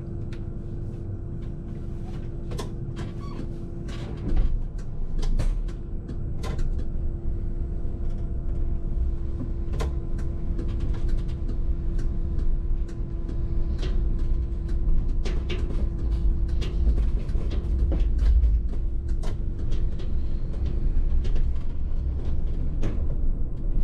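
Clicks and rattles sound inside the bus cab now and then.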